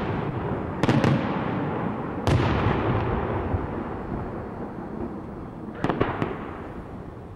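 Small firecrackers crackle and pop in quick bursts.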